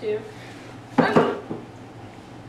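A body thumps down onto a cushioned seat.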